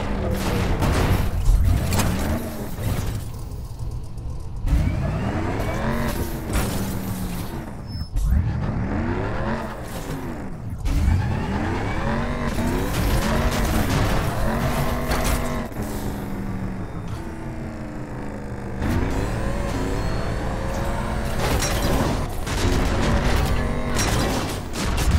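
A vehicle engine revs loudly, its pitch rising and falling again and again.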